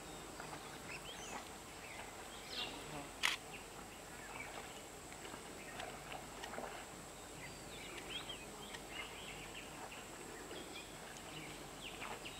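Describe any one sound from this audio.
A rhinoceros munches wet plants in shallow water.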